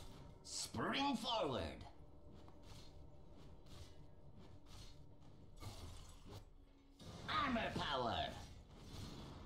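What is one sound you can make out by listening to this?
Fantasy game combat effects whoosh and crackle.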